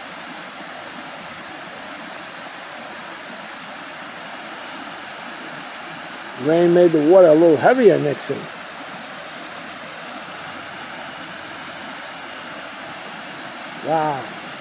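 Water rushes steadily over a small weir and babbles down a stream nearby.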